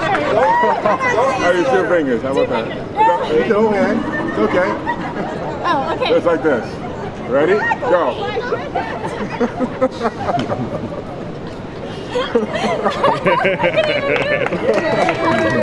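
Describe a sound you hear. A crowd outdoors cheers and chatters.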